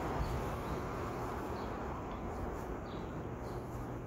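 A car drives along the street.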